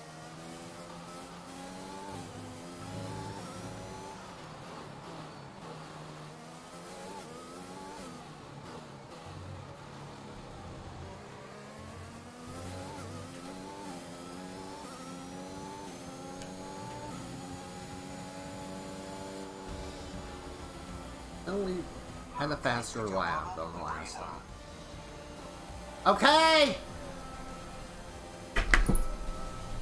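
A racing car engine whines loudly, rising in pitch and dropping with each gear change.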